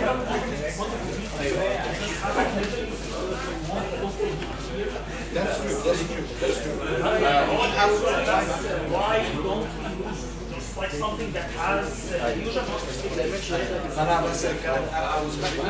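A man lectures steadily through a microphone.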